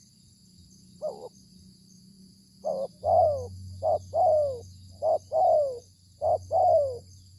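A dove coos in short, repeated, hollow calls nearby.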